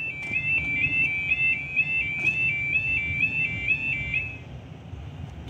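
A level crossing alarm wails in a rapid two-tone warble.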